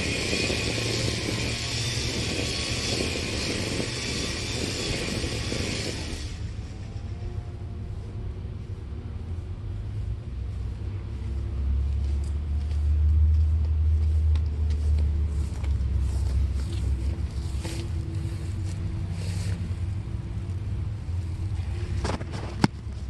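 An electric string trimmer whirs while cutting grass, growing louder as it comes close.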